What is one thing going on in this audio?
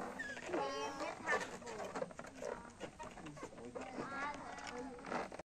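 Children chatter and call out excitedly nearby.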